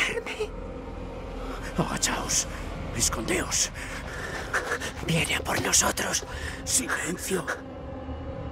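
A middle-aged man speaks tensely, close by.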